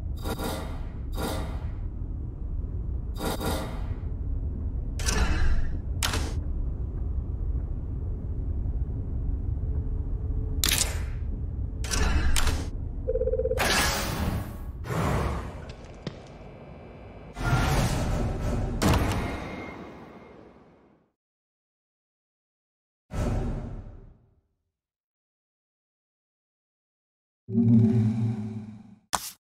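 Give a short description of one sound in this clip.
Short electronic clicks sound as game menu items are chosen.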